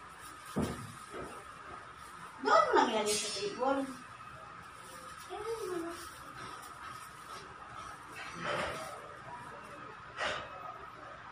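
Dishes and utensils clink.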